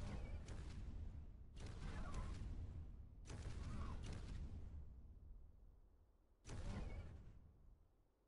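Wind rushes past in loud, whooshing bursts.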